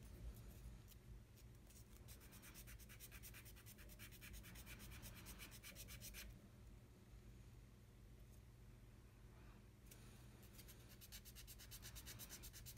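A small knife blade scrapes and shaves a thin wooden stick in quick strokes.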